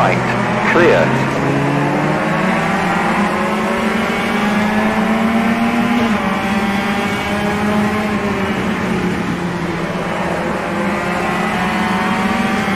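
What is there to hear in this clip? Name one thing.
A racing game's touring car engine roars, accelerating through the gears.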